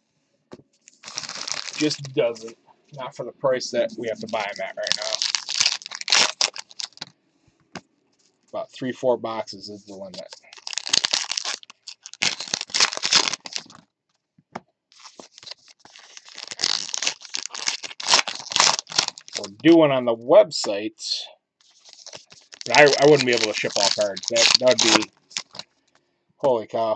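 Plastic wrappers crinkle and rustle as hands handle them.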